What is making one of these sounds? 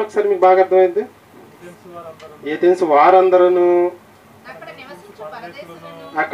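A young man sings or chants through a microphone with a loudspeaker, in loud drawn-out phrases.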